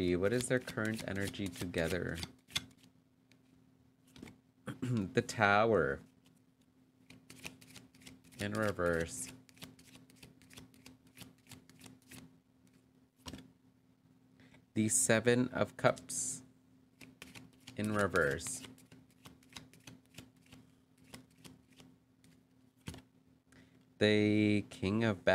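Playing cards slide and tap softly onto a cloth mat.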